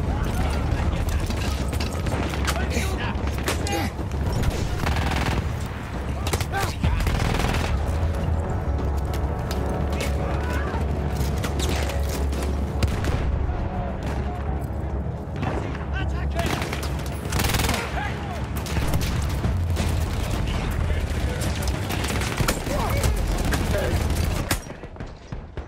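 Gunfire cracks and rattles in rapid bursts.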